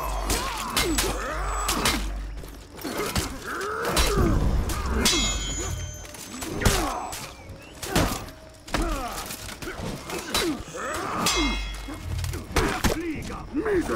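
Metal blades clash and clang again and again.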